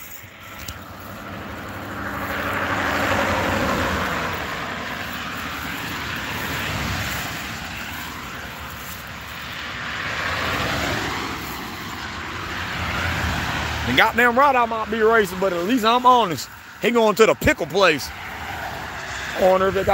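Cars rush past close by on a road, one after another.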